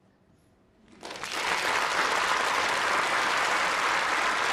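An audience bursts into steady applause.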